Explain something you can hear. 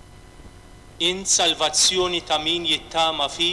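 A man sings through a microphone in a large echoing hall.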